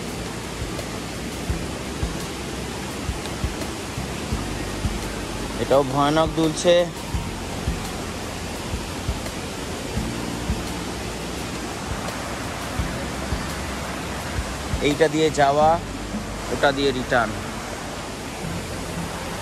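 Footsteps thud and creak on a bamboo footbridge.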